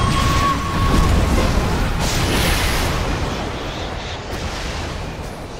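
Magic spells blast and crackle in a game battle.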